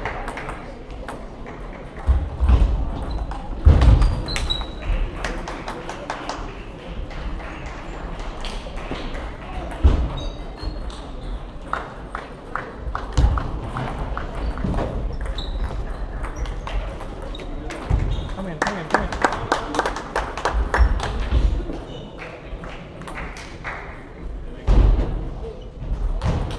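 A table tennis ball clicks back and forth between paddles and table in a large echoing hall.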